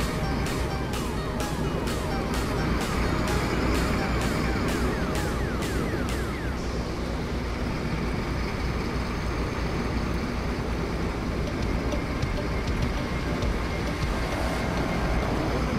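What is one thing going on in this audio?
A truck engine rumbles steadily as it drives along a road.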